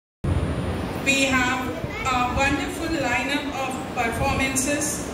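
A group of children sing together into microphones.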